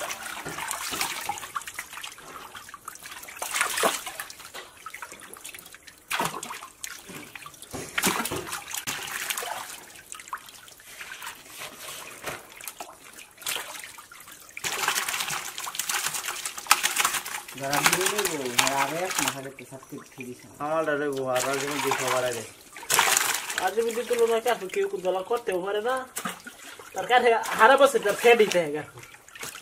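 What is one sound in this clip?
Many fish thrash and splash loudly in shallow water.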